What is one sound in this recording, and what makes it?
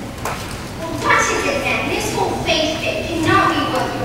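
A choir of children sings over a loudspeaker.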